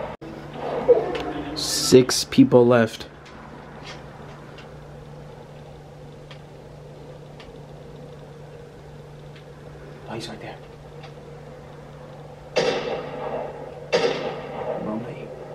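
Sound effects from a video game play through television speakers.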